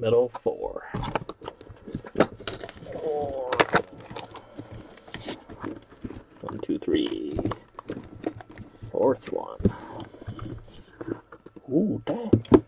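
Cardboard boxes rustle and slide against each other as they are handled.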